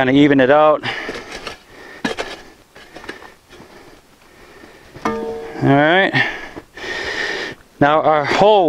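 A post-hole digger scrapes and thuds into soil.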